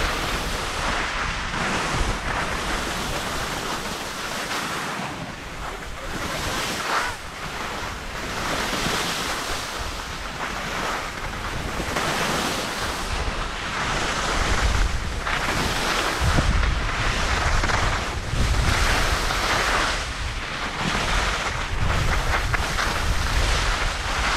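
Skis scrape and hiss over snow in swooping turns.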